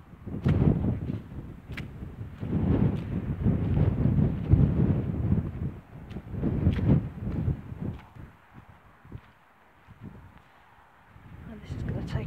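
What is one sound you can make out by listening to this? Wind gusts roughly across open ground, rising and falling.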